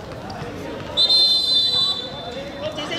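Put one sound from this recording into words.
A referee's whistle blows a sharp blast.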